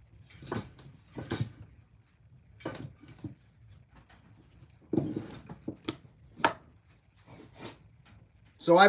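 Tools knock and clatter on a workbench.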